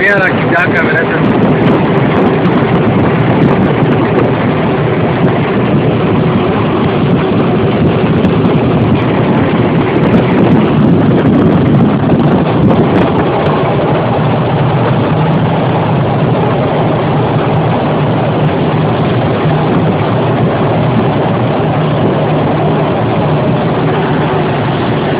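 Wind rushes loudly past an open window.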